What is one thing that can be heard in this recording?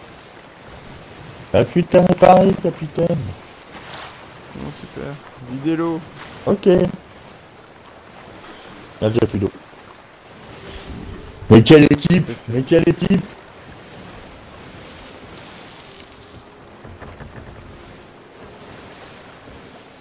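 Waves wash and churn against a wooden ship.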